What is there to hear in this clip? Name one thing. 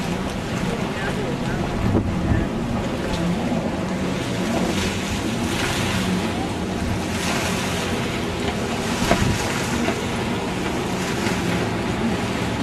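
Wind blows across the water.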